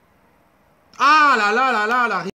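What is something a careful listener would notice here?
A man shouts loudly into a close microphone.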